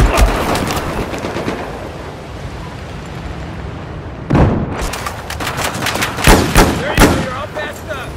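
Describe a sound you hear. Gunshots crack in sharp bursts.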